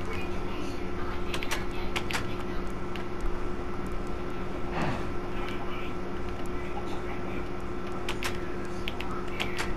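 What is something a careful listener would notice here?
Chickens cluck softly all around.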